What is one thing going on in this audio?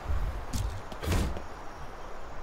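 A wooden plank thuds into place.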